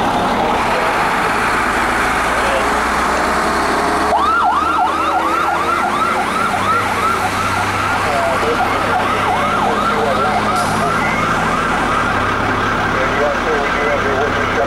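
A fire truck's diesel engine rumbles as the truck pulls away.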